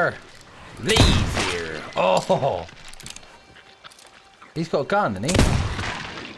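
A pistol fires with a loud bang.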